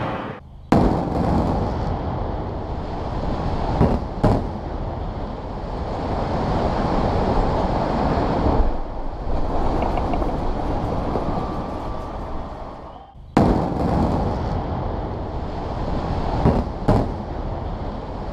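A tall building collapses with a deep, roaring rumble.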